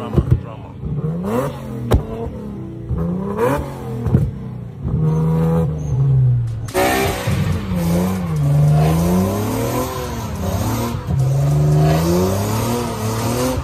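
A car engine revs hard and loudly.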